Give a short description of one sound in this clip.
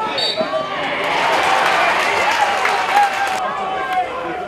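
A crowd cheers and applauds in the distance.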